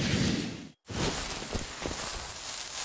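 Fireworks fizz and crackle.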